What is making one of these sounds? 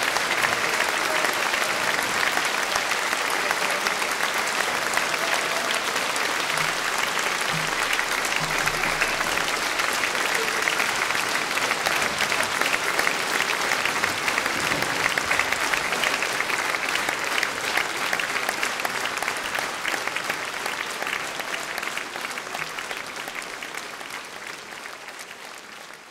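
An audience applauds loudly in a large echoing hall, then fades away.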